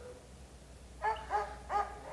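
A dog barks a few times close by.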